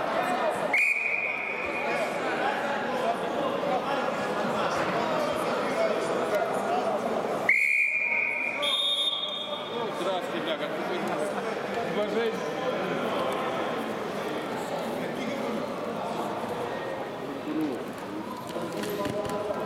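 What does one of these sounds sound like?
Spectators chatter in a large echoing hall.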